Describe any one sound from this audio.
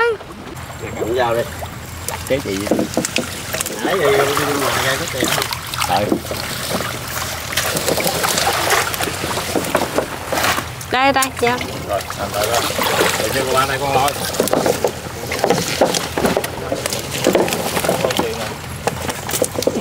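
Water splashes as people wade and pull plants through it.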